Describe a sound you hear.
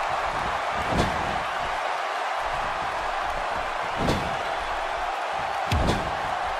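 Wrestlers' bodies thud heavily against each other.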